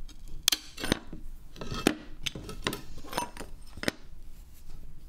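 Pliers snap and crack a piece of glass.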